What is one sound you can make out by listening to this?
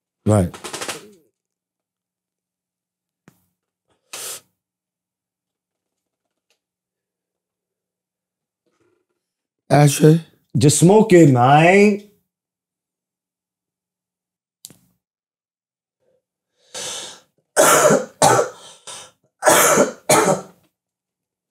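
A man speaks with animation into a close microphone, in short bursts with long pauses.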